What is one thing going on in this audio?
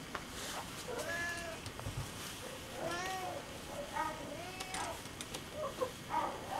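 A cat meows softly several times, close by.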